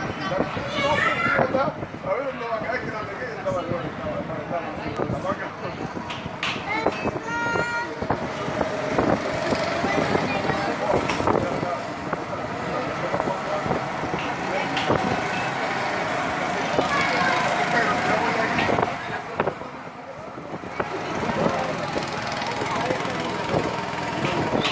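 Go-kart engines whine as the karts race around a track.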